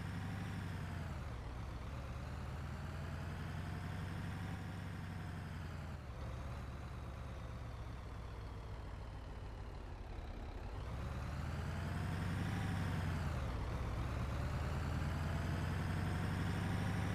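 A bus engine hums steadily, rising and falling in pitch as the bus speeds up and slows down.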